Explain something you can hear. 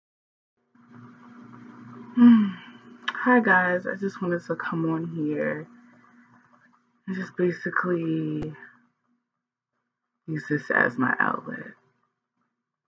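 A young woman talks calmly and close to the microphone, in short bursts with pauses.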